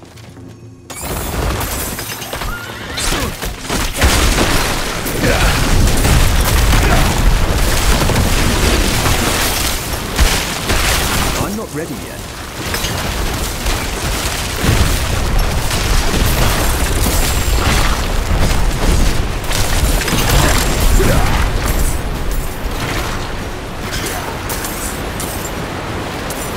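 Icy spells crackle and shatter over and over amid a dense din of combat.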